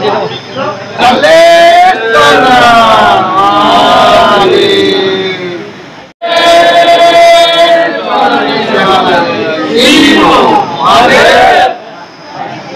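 A group of young men chant together loudly, close by.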